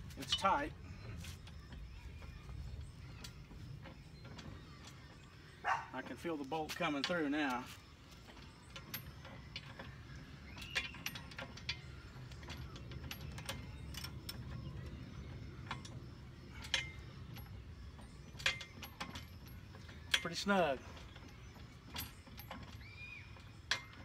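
Metal clicks and clanks.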